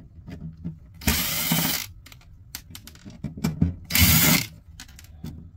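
A cordless drill whirs in short bursts, driving out screws.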